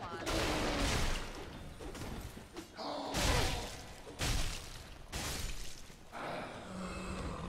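Heavy blows and crashing noises from a game fight burst out repeatedly.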